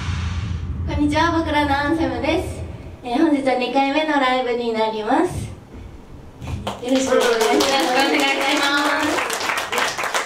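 A young woman speaks with animation into a microphone, heard through loudspeakers.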